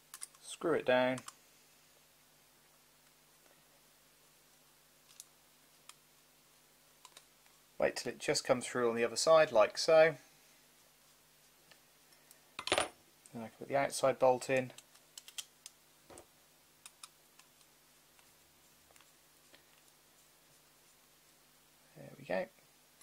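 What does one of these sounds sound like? Small parts click and tap together as they are handled.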